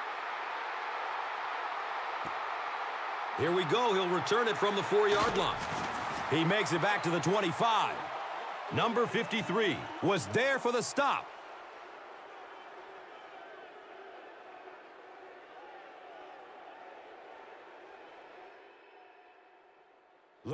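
A large crowd roars and cheers in a big stadium.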